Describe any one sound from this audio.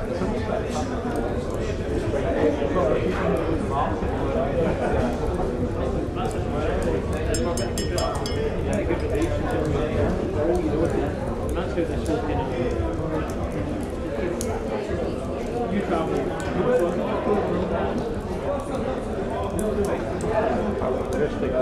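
A crowd of men and women chatters and murmurs indoors.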